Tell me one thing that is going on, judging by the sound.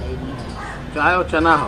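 A man speaks loudly outdoors.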